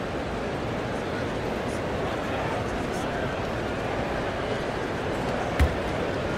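A large crowd murmurs steadily in an arena.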